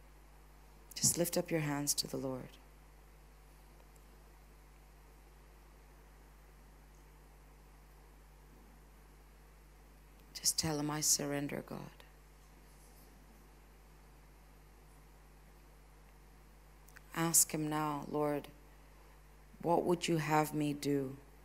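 A woman speaks with fervour into a microphone in a large echoing hall.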